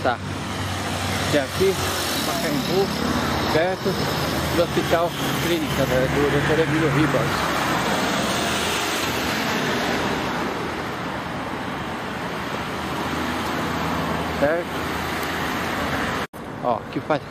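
Traffic rumbles steadily past on a nearby road.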